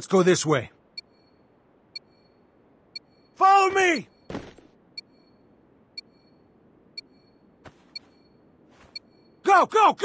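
A short electronic beep sounds once every second.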